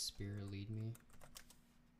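A man says a few words close to a microphone.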